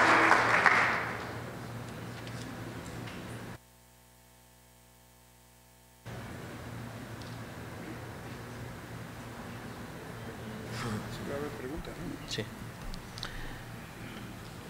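A crowd murmurs softly in a big hall.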